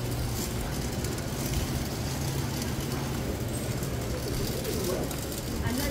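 A wheeled shopping trolley rattles over concrete.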